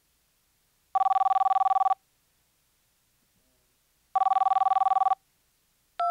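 A phone ringing tone sounds twice through a handset.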